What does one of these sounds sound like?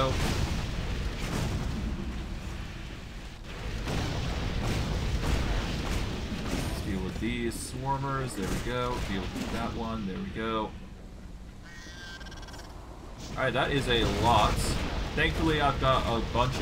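Magic spells crackle and whoosh in quick bursts.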